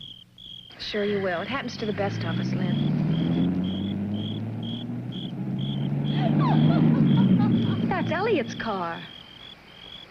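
A car engine revs and passes close by.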